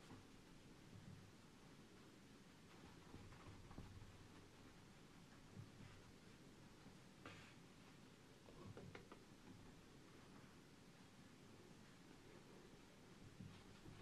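A cloth wipes across a board.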